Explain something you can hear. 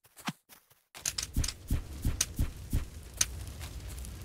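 Sword blows land on a player with quick, sharp hits.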